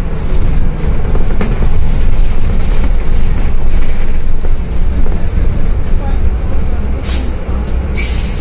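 The bus rattles and creaks as it rolls over cobblestones.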